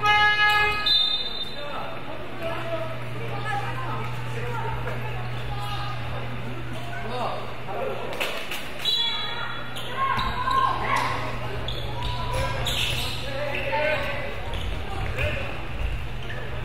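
Children shout and call out in a large echoing gym.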